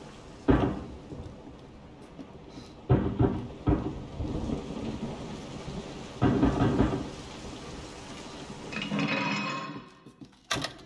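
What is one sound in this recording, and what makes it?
Footsteps thud and creak on wooden floorboards.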